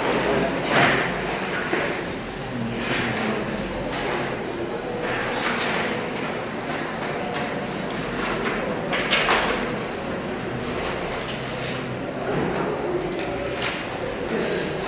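Sheets of paper rustle and shuffle close by.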